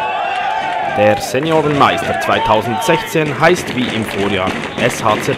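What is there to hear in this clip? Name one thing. A group of young men cheer and shout loudly outdoors.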